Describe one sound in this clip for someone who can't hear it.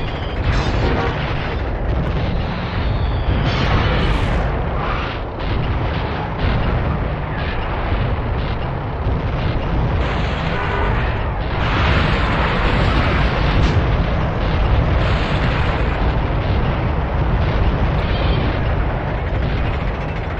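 An engine rumbles steadily as a vehicle drives.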